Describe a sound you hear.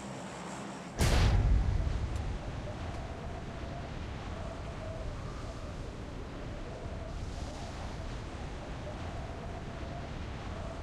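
Wind rushes past a skydiver in freefall.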